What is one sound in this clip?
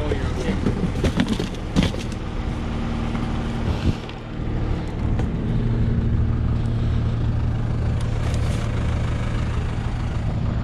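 Plastic plant trays rustle and knock as they are handled.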